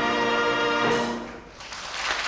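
A large male choir sings a sustained final chord in a hall.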